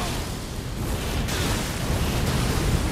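Fire bursts with a deep rumbling whoosh.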